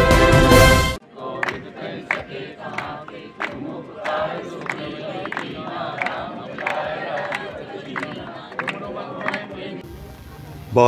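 A group of people sing together.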